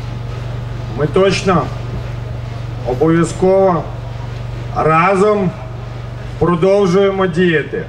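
A man speaks loudly in short, forceful phrases through a microphone and loudspeakers.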